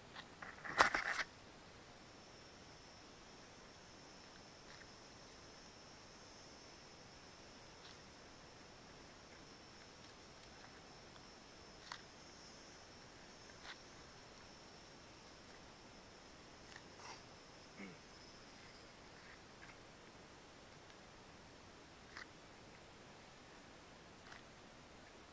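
Wooden pegs knock against a tree trunk now and then.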